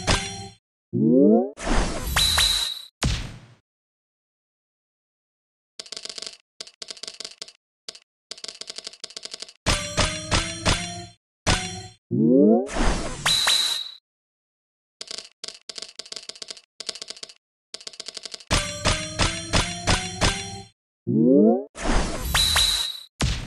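A magic attack whooshes and booms.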